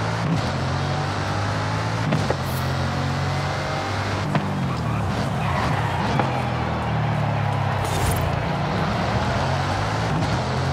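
A powerful car engine roars steadily, its pitch rising and falling as the car speeds up and slows.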